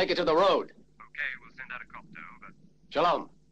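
A field radio crackles with short bursts of sound.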